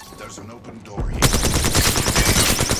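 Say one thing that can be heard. A gun fires rapidly in quick bursts.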